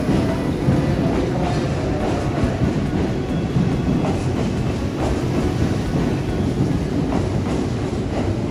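A train rumbles past loudly, wheels clattering over the rails, echoing in an underground station.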